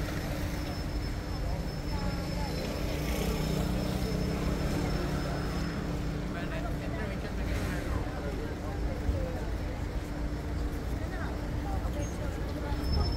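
Men and women chatter quietly in a crowd outdoors.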